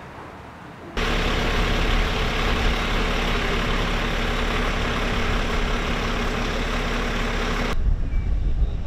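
An ambulance engine idles with a steady roar nearby.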